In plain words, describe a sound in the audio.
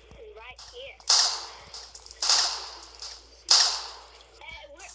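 A sniper rifle fires several loud, sharp shots.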